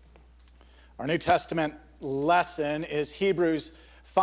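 A middle-aged man speaks calmly into a microphone in a large echoing room.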